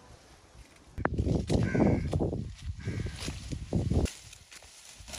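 Leafy plants rustle as they are pushed aside and picked close by.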